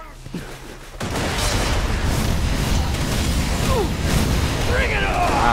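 Gunfire and explosions boom and crackle in quick succession.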